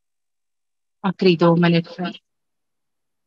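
An elderly man speaks briefly and calmly, heard through an online call.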